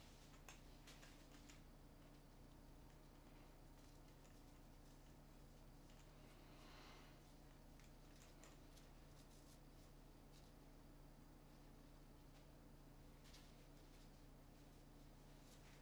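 Fabric and plastic rustle and click as a man handles a bag.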